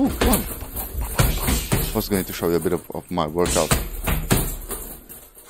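Gloved punches thud against a heavy punching bag.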